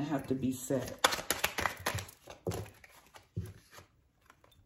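Cards rustle and snap as they are shuffled by hand.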